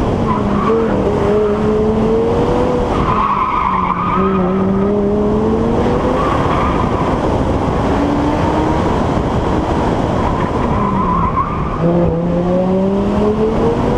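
Wind rushes past an open-top car.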